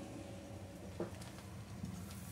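A metal lid clinks against a pan.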